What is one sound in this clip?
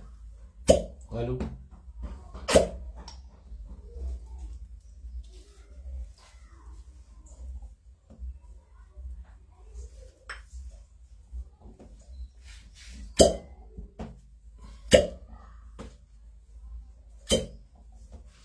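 Glass cups knock and clink against each other.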